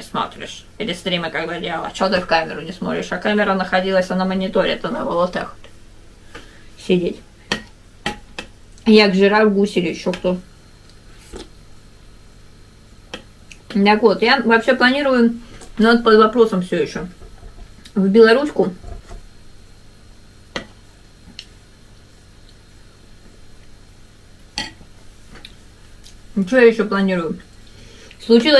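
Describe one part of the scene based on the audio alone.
A middle-aged woman talks calmly and close by, in short bursts.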